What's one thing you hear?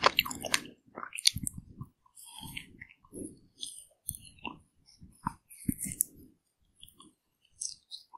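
Someone bites into a crunchy ice pop coating with a crisp crackle, close to the microphone.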